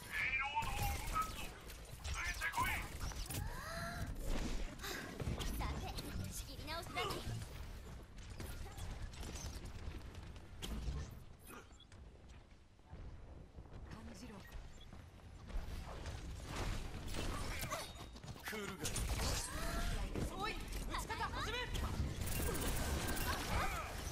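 Video game pistols fire in rapid bursts.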